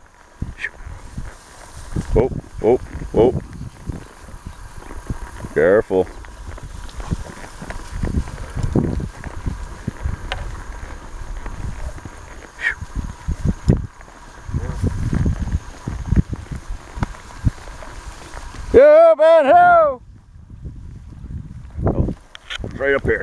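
A horse walks through tall grass.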